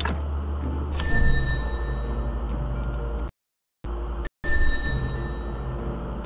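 A short bright chime rings out twice.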